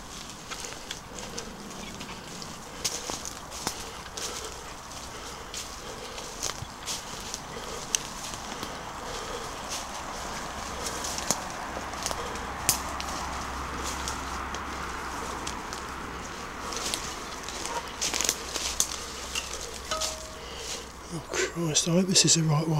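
Footsteps crunch and rustle through dry leaves on a path.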